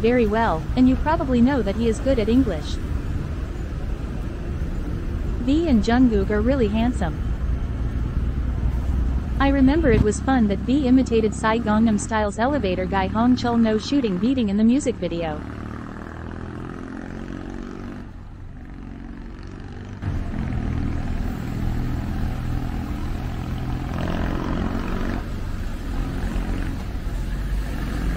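Traffic hums steadily on a nearby road outdoors.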